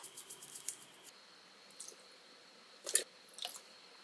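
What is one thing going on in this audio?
Liquid pours into a glass bowl.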